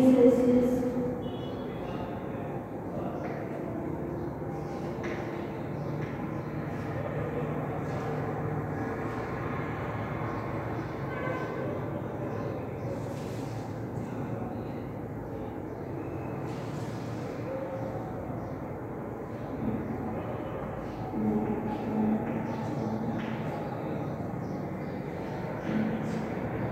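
Chalk scratches and taps on a blackboard.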